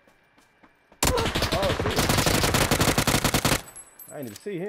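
An automatic rifle fires a rapid, loud burst.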